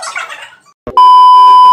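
A steady test tone sounds loudly.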